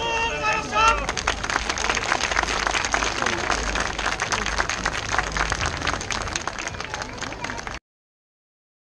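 A large crowd claps and applauds outdoors.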